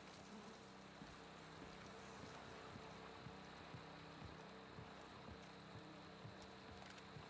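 Footsteps tread on concrete.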